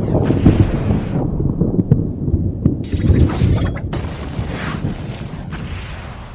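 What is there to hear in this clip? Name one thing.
Game sword slashes and magic blasts crash and clang rapidly.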